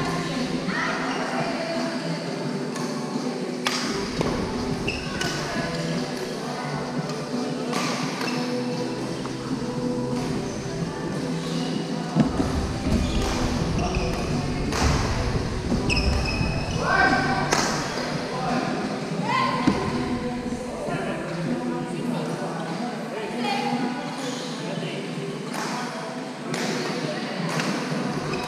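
Badminton rackets hit a shuttlecock back and forth in a large echoing hall.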